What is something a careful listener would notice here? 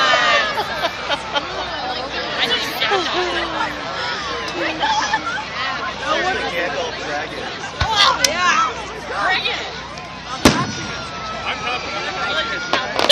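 Fireworks bang and pop in the distance.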